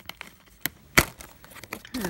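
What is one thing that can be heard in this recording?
A plastic disc case snaps open with a sharp click.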